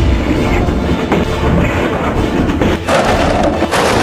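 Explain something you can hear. Plastic blocks tumble and clatter onto paving.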